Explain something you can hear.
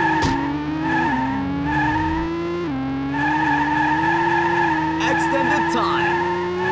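A racing car engine hums steadily, its pitch dropping at gear changes and then climbing again.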